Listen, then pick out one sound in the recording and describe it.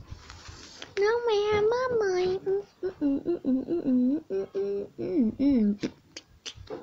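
A young girl sings close by.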